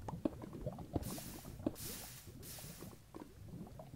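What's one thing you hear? Fire crackles and hisses.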